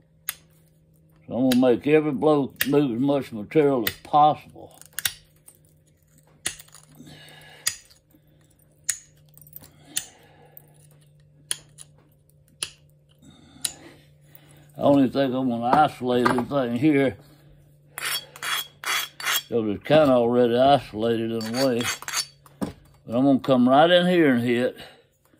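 A small blade scrapes in short, sharp strokes.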